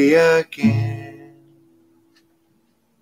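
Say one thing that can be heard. An acoustic guitar chord rings out and fades.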